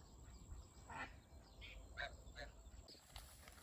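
Ducks quack softly by the water.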